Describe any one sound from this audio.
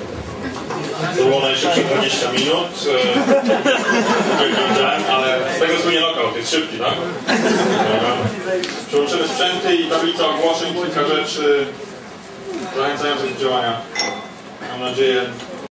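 A young man speaks into a microphone over loudspeakers.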